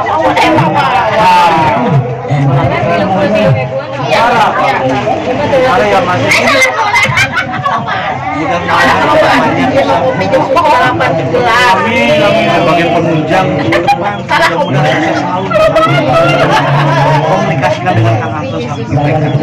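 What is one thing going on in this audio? Several men and women chat at once nearby.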